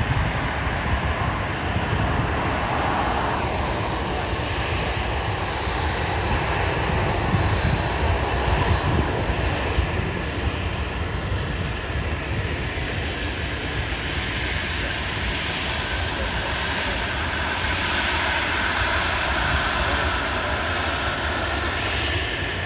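A jet airliner's engines roar loudly as it rolls along a runway.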